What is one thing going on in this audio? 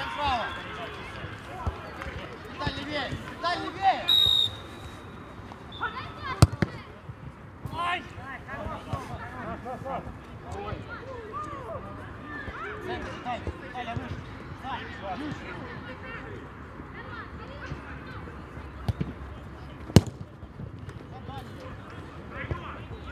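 Young men shout to each other outdoors across a playing field.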